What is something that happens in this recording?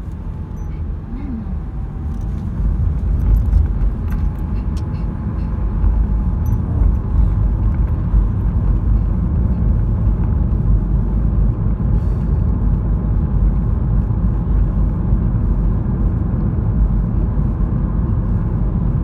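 A car engine hums and road noise rumbles from inside a moving car, growing louder as it speeds up.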